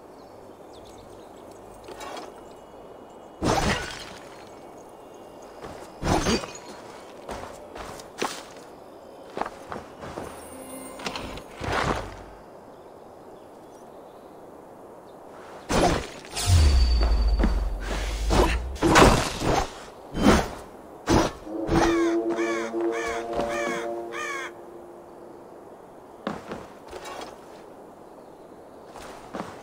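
Footsteps scuff over stone and dirt.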